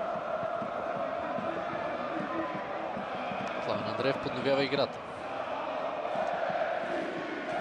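A large stadium crowd roars and chants steadily in the open air.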